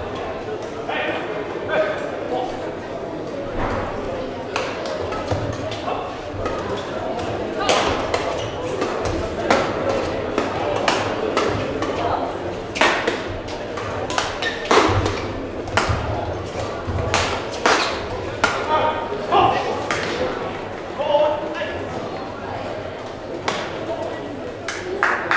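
A badminton racket strikes a shuttlecock with sharp pops, echoing in a large hall.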